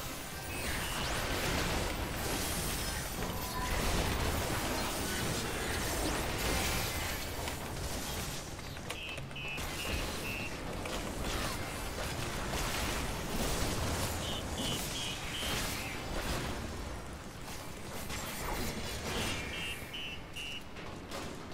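Battle effects of spells and blasts crash and whoosh.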